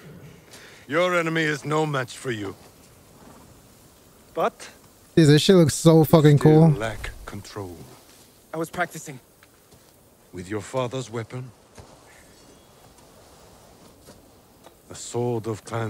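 An older man speaks slowly and calmly, in a low voice.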